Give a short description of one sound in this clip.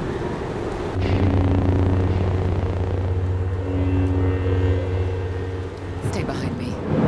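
Energy blades hum steadily with a low buzz.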